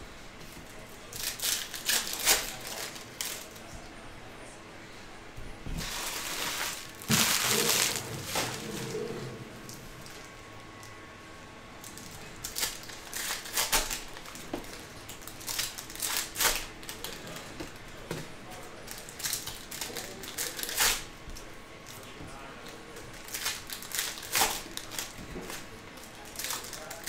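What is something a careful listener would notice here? Foil card packs crinkle and rustle in hands close by.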